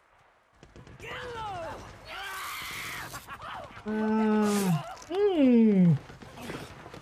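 A man screams in pain.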